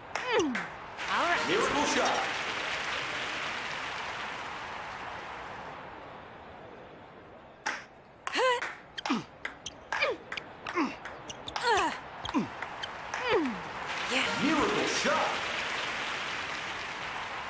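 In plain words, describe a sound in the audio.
A crowd cheers and applauds in a large hall.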